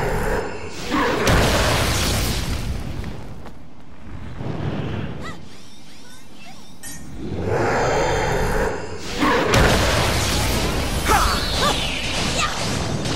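Magic blasts whoosh and boom in bursts.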